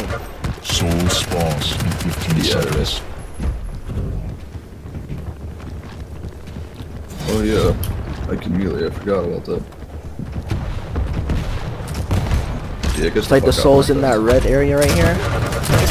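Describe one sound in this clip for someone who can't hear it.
A rapid-fire gun shoots in short bursts.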